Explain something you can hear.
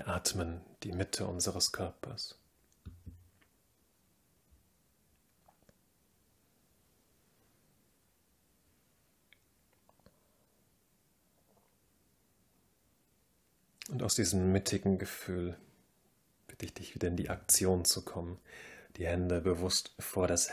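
A young man speaks calmly and slowly close to a microphone, with long pauses.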